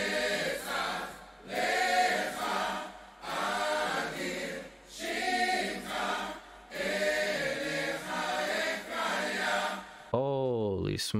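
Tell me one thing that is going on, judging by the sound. A woman sings through a concert sound system.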